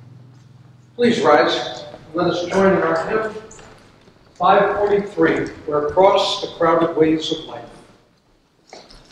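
An elderly man reads out a prayer in an echoing hall.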